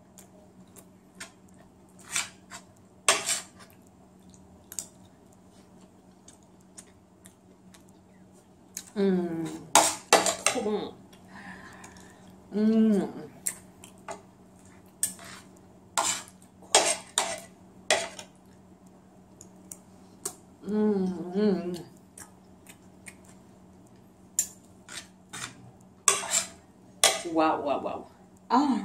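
Cutlery clinks and scrapes against a plate.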